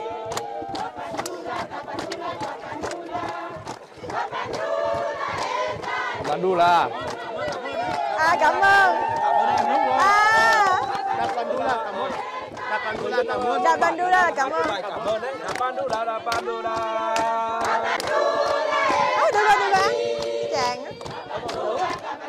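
People clap their hands in a rhythm.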